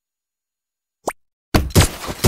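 A button click sounds once.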